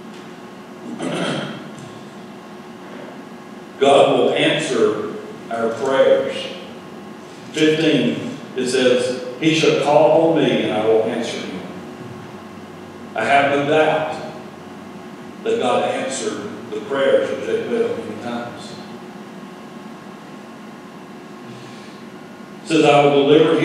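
A man speaks calmly into a microphone, with pauses, in a large echoing hall.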